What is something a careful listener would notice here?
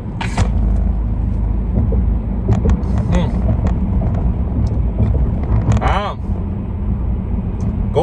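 A car engine rumbles steadily inside the cabin.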